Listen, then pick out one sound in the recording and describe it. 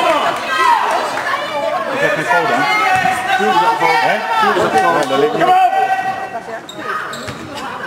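Spectators talk and shout in an echoing sports hall.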